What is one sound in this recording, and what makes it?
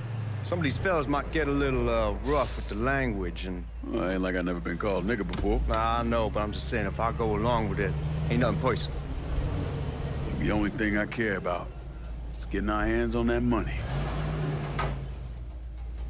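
Another man answers calmly, heard close.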